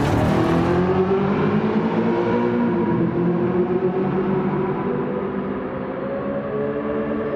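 A sports car engine roars loudly and then fades as the car drives away.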